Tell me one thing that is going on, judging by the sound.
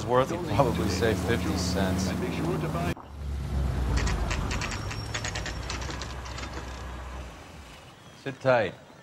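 A car engine hums steadily as the car drives along.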